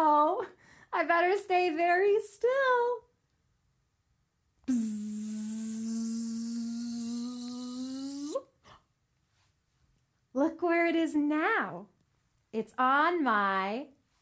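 A young woman sings and speaks playfully close to a microphone.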